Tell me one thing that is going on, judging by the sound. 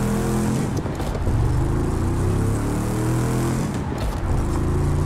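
A sports car engine roars loudly, its pitch rising as it revs up through the gears.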